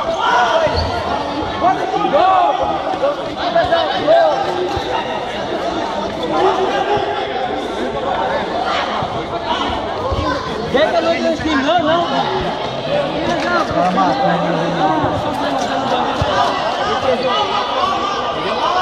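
A crowd of spectators chatters and shouts throughout in an echoing hall.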